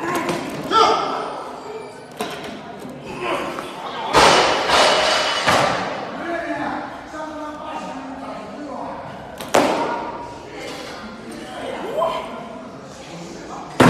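Barbell plates rattle as a man jerks a heavy bar overhead.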